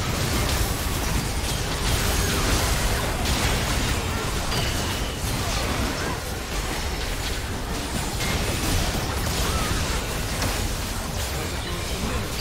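Heavy impacts thud and boom.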